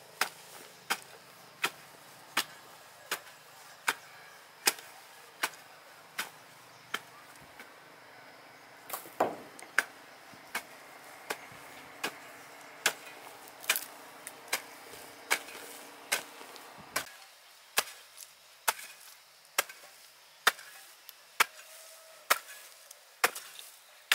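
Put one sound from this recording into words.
A hoe chops into soft soil with regular dull thuds.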